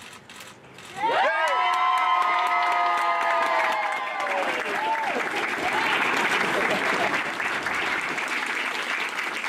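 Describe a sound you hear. A crowd cheers loudly and whoops.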